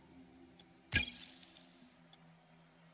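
A short electronic chime rings and fades.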